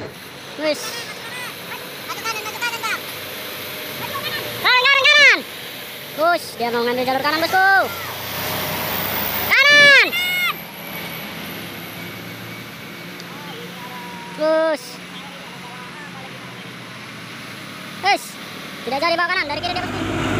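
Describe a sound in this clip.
Heavy truck horns blare in short rising and falling musical blasts.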